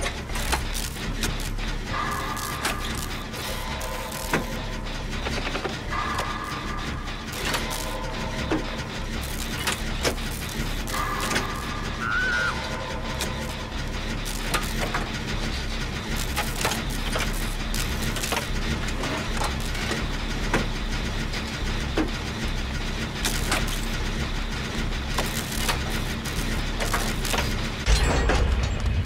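Metal parts clank and rattle as hands work on an engine.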